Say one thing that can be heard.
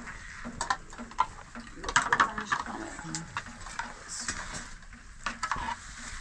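Metal dishes clink and clatter close by.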